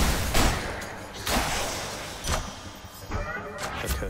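A blade slashes and strikes in a fast fight.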